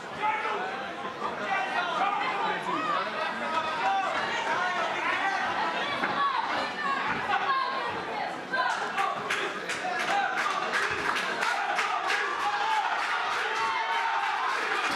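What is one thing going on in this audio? A crowd of men and women shouts and cheers loudly in an echoing hall.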